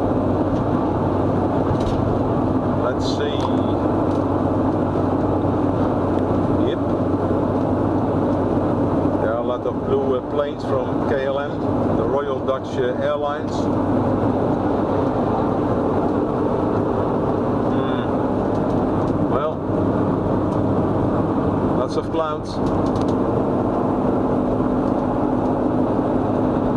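A car rumbles steadily along a road, heard from inside.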